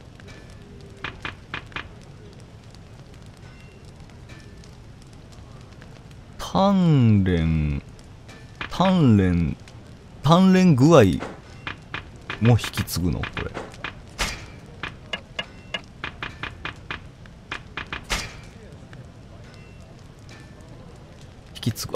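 Soft menu clicks tick as selections change.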